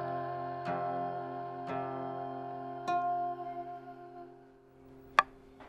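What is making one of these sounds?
An acoustic guitar is strummed and rings out.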